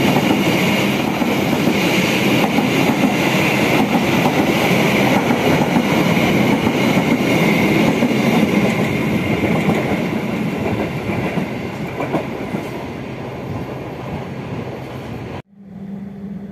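A train rumbles and rattles loudly as another train passes close by.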